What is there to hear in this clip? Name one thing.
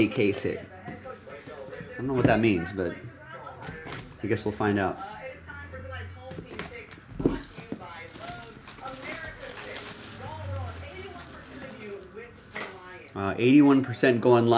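Cardboard boxes tap and slide against each other.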